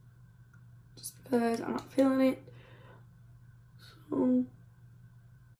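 A young woman talks calmly into a nearby microphone.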